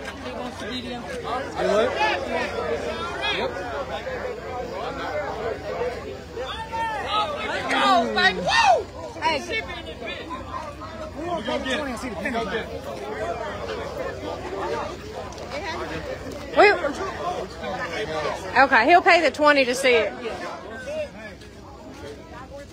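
Several men talk and shout with animation close by.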